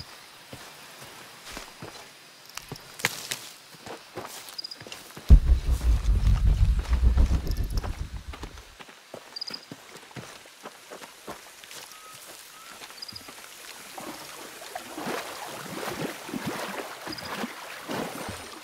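Footsteps crunch on leaves and undergrowth.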